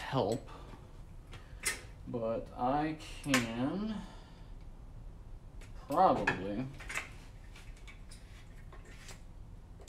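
Metal tools clink and scrape on a workbench.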